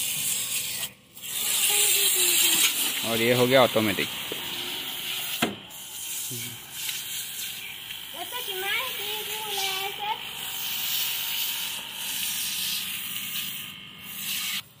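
A pressure washer sprays water with a steady hiss.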